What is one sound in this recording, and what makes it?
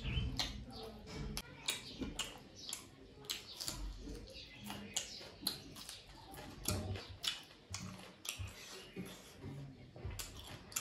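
A man chews food with wet, smacking sounds close to the microphone.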